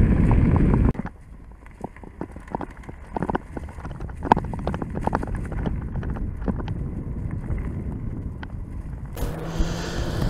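Tyres roll and crunch over dry leaves on a dirt trail.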